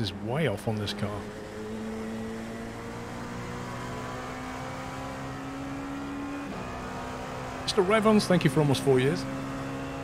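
A race car engine hums steadily.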